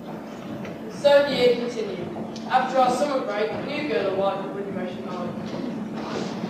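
A young man speaks through a microphone and loudspeaker in a large echoing hall.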